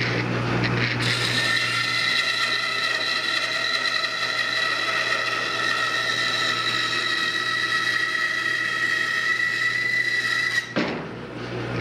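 A band saw cuts through a redwood beam.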